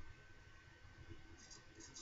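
A razor scrapes across stubble in short strokes.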